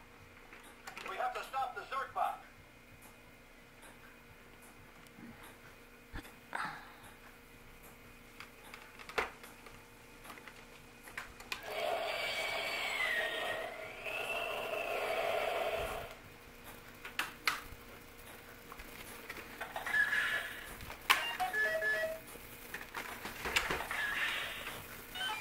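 A toy plays electronic sound effects through a small speaker.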